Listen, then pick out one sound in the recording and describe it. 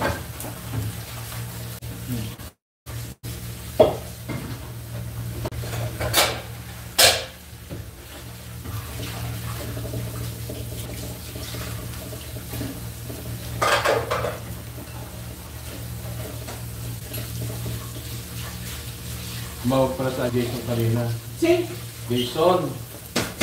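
A wooden spatula scrapes and stirs food in a frying pan.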